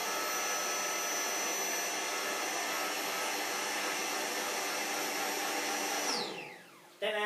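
An air mattress pump hums steadily, then stops.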